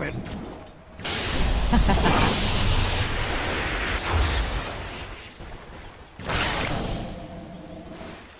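Magical spell effects whoosh and crackle in bursts.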